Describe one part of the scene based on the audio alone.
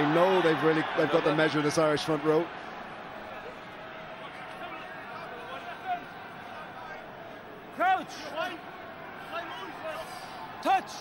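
A large stadium crowd murmurs and cheers steadily in the open air.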